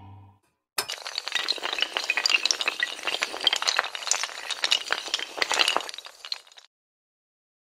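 Dominoes clatter rapidly as they topple against each other.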